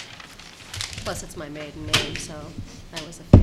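A woman speaks briefly through a microphone.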